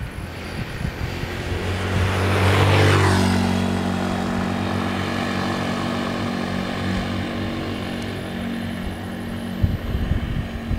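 A motor scooter drives past close by, its engine droning loudly and then fading.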